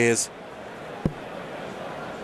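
A dart thuds into a dartboard.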